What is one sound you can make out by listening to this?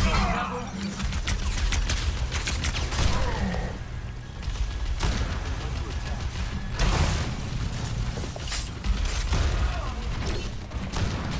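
Game gunfire and explosions crack and boom in bursts.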